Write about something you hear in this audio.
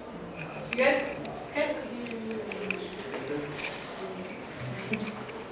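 A woman speaks calmly to a group.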